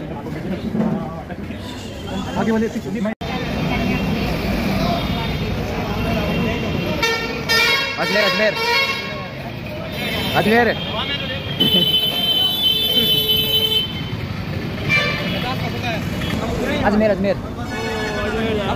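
Traffic rumbles on a busy street.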